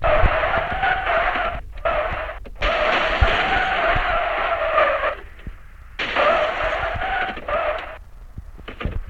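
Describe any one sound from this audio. A game car engine roars loudly at high revs.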